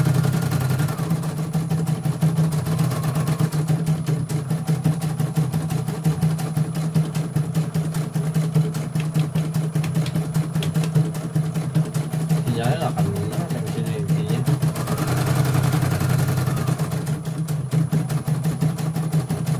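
An embroidery machine hums steadily and taps rapidly as it stitches.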